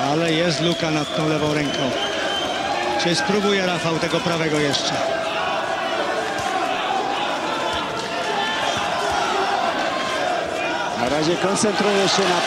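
Boxing gloves thud against a body.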